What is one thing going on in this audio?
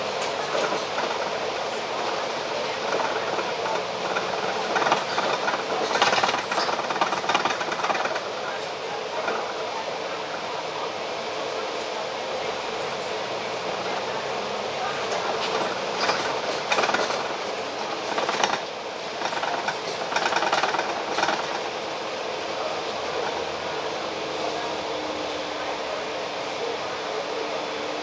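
A tram rumbles and rattles along its tracks.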